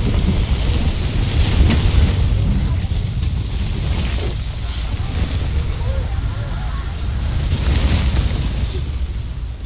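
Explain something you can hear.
Wind rumbles low and steady through trees.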